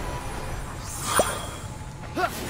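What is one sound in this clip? A short bright chime rings as items are picked up.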